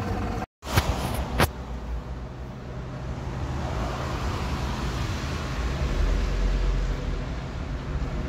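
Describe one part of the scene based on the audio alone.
A bus pulls away in the distance.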